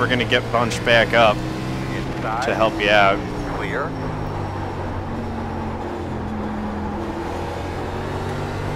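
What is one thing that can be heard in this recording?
A race car engine drones steadily.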